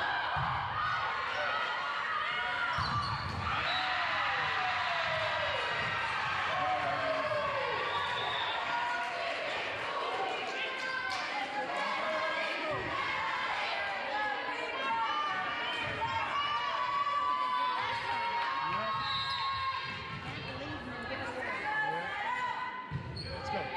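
Young women shout and call out to each other in a large echoing gym.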